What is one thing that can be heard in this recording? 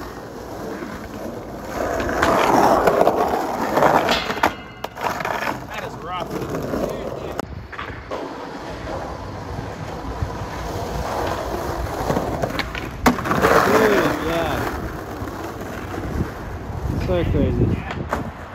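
Skateboard wheels roll and rumble over rough pavement.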